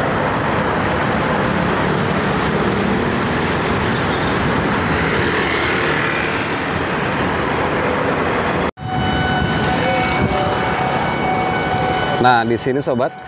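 Traffic hums steadily along a nearby road.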